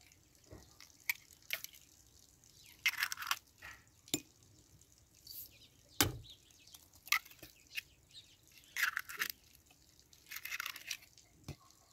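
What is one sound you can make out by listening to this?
Eggs crack against the rim of a plastic bowl.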